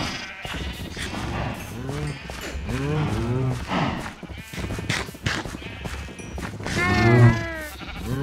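Sheep bleat in a crowded flock.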